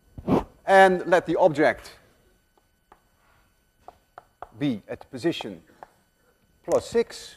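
A man speaks calmly in a lecturing tone, close to a microphone.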